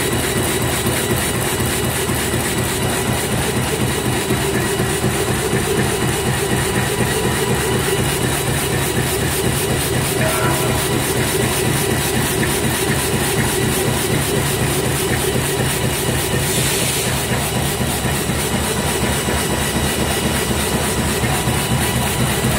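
A machine runs with a steady, fast rhythmic clatter and hum.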